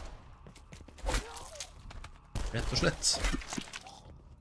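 Heavy blows land with wet, thudding impacts.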